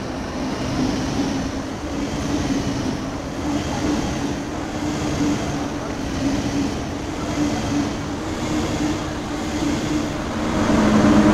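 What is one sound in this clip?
A high-speed train rushes past close by with a steady rumbling roar and a rhythmic clatter of wheels.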